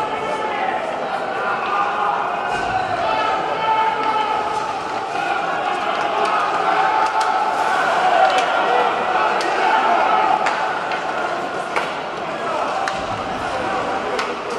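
A crowd in a large echoing arena murmurs and cheers steadily.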